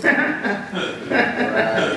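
A man laughs softly.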